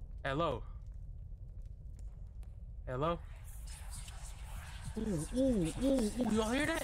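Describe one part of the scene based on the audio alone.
A fire crackles nearby.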